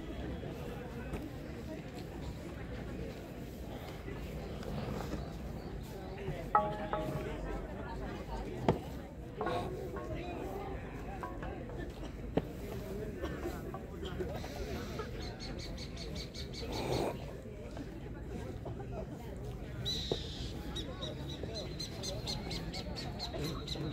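Young women talk and call out at a distance outdoors.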